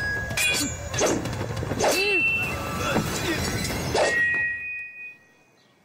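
Swords clash and swish in a fight.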